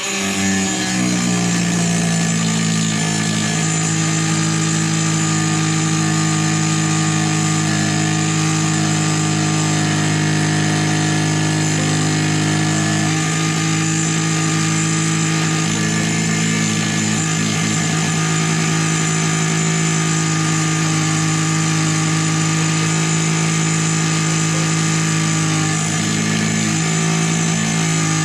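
An angle grinder whines loudly as it cuts through metal, very close.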